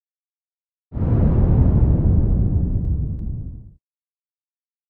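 Stone crumbles and breaks apart with a deep rumble.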